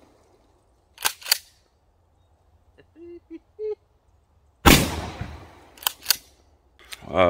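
A shotgun fires loud blasts outdoors.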